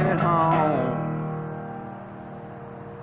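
A resonator guitar chord is strummed and rings out slowly.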